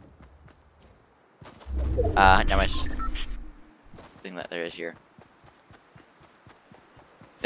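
Quick footsteps patter across grass.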